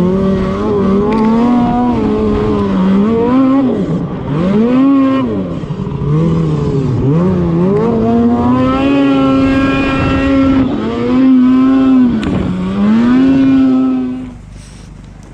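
A snowmobile engine roars and revs up and down close by.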